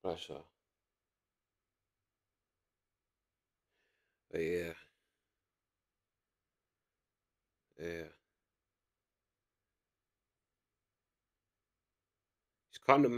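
A young man speaks calmly in short bursts into a close microphone.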